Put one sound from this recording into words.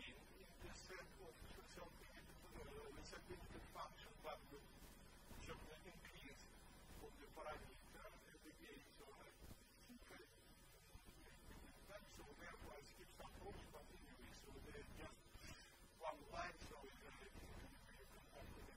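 An elderly man lectures calmly, heard through a microphone in a large room.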